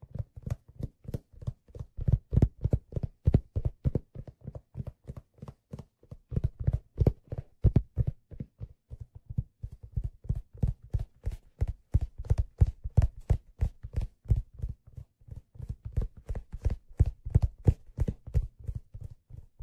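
Fingers tap and thump rapidly on a hollow leather case close to a microphone.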